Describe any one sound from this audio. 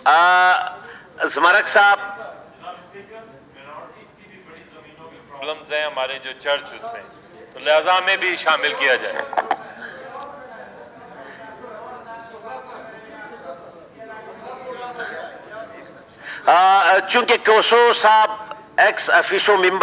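A man speaks loudly into a microphone in a large echoing hall.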